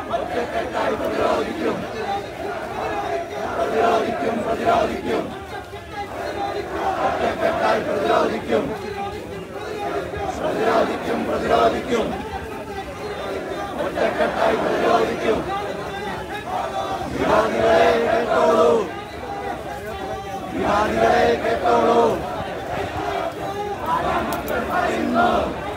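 A crowd of men chants slogans in unison outdoors.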